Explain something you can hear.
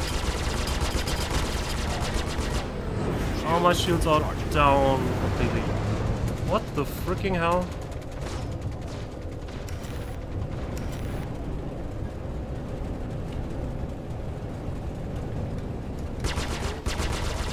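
A spaceship engine hums low and steadily.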